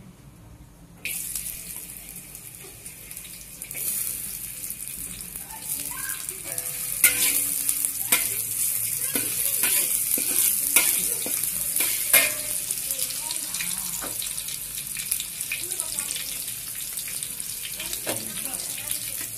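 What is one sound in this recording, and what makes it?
Hot oil sizzles loudly in a pan.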